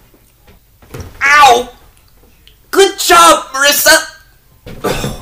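A young man sobs and wails close by.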